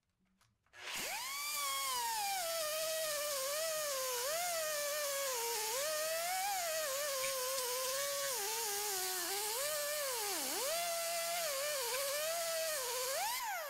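An angle grinder grinds metal, its whine dipping and rising under load.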